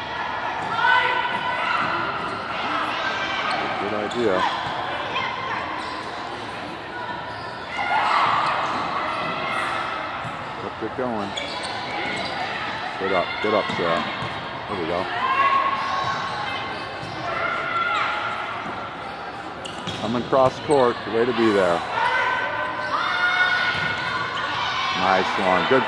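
A volleyball is struck with hollow slaps.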